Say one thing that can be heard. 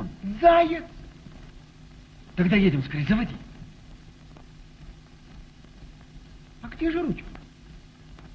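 A man speaks sharply nearby, in short bursts.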